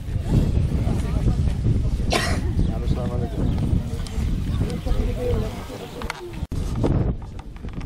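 A crowd of men and women murmurs and talks outdoors.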